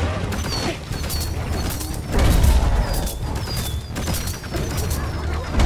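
Rapid gunfire blasts repeatedly.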